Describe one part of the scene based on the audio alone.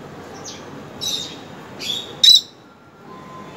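A lovebird chirps in short calls.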